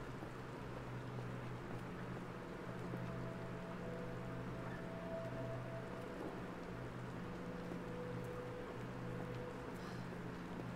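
Footsteps tread slowly on concrete.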